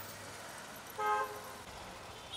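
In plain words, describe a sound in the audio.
A vehicle horn honks briefly.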